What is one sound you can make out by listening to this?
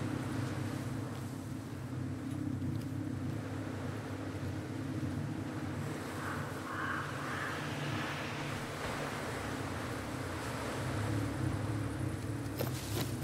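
Grass and brush rustle as someone crawls through them.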